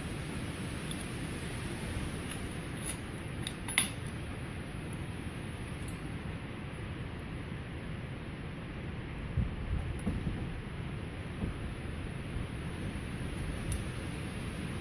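Small metal parts click and tap against a bicycle handlebar.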